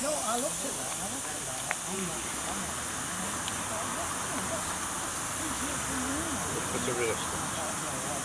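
Steam hisses from a small locomotive.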